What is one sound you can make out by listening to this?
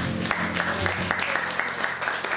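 A trombone plays a jazz tune.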